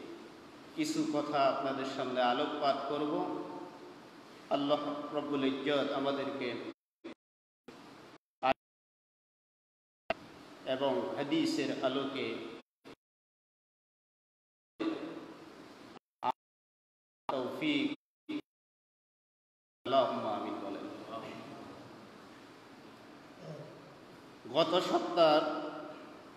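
A man chants through a microphone and loudspeaker, in phrases broken by pauses, with echo.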